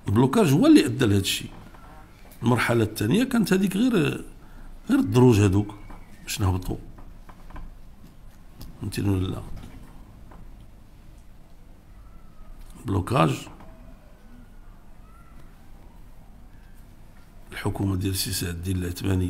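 An elderly man speaks with emphasis into a microphone, with long pauses.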